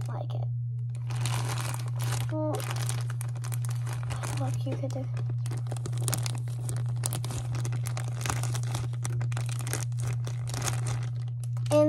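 A plastic bag crinkles as it is squeezed.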